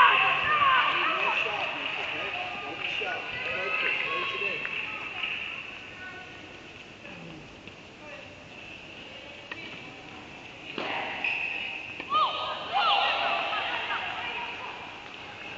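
Young women talk and call out across the court.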